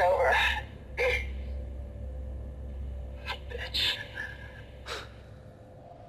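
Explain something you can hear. A man speaks briefly through a radio.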